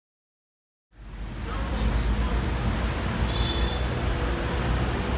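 Traffic rumbles past on a busy street.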